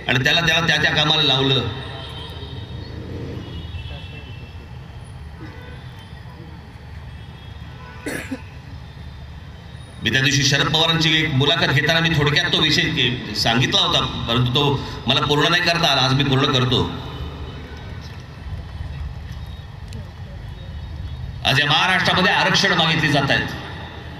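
A man speaks forcefully through loudspeakers outdoors, echoing across a large open space.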